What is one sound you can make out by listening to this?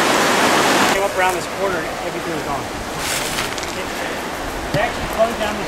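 A young man talks casually close by.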